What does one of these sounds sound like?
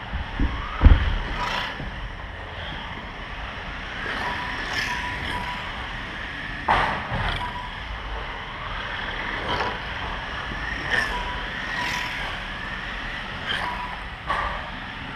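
Model cars knock against the track's plastic barriers.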